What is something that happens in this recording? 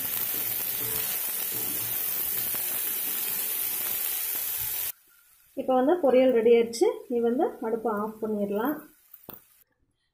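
A metal spoon scrapes and stirs food in a pan.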